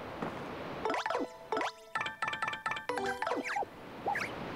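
Bright electronic chimes ring out.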